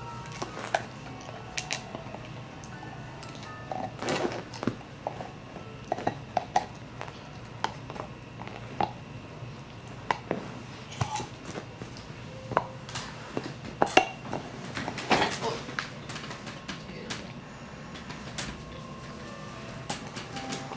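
A dog gnaws and chews on a hard plastic bone, with scattered clicks and scrapes.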